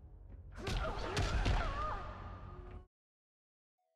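Heavy blows and a roaring blast crash in a fight.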